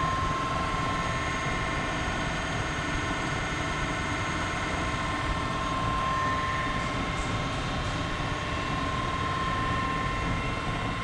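A large machine spindle spins with a steady high whine and hum.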